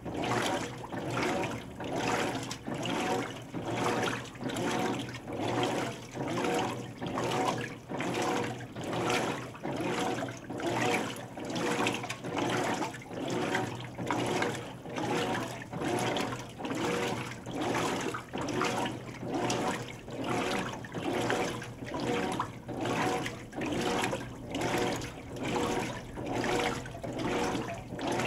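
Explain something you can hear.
Water sloshes and churns in rhythmic surges as a washing machine agitates.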